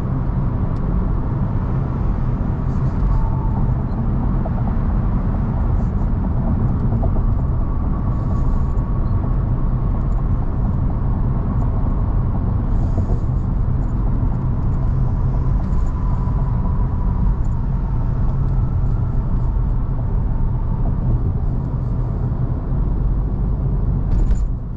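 Tyres roar steadily on a road.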